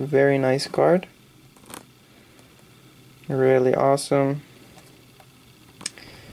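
Plastic wrapping crinkles softly between fingers.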